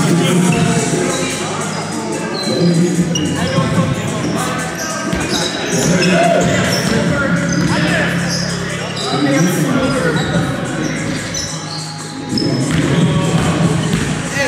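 Young people call out and chatter at a distance in an echoing hall.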